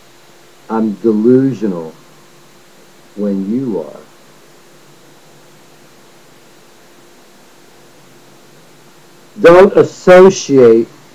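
A middle-aged man speaks close to a microphone, in short bursts with pauses.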